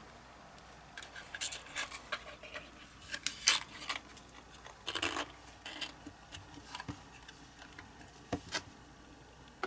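Thin cardboard rustles and taps as a small box is folded shut.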